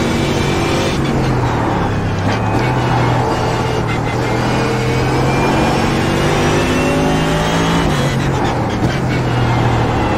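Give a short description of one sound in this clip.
A racing car engine drops in pitch as gears shift down.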